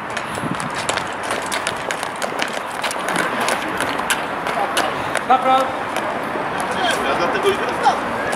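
Boots tramp on paving stones as a group marches.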